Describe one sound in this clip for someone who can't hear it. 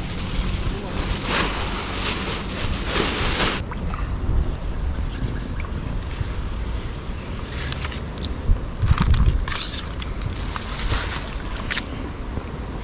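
A paddle splashes and drips in shallow water.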